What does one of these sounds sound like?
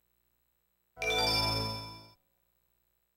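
A bright electronic chime rings out and quickly fades.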